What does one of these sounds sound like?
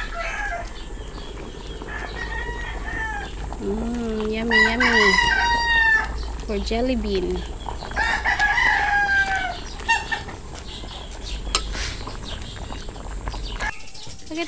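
A metal spatula scrapes and stirs food in a sizzling pan.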